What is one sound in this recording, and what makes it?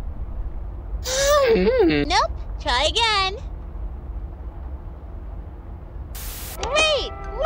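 A young girl speaks cheerfully and brightly, close up.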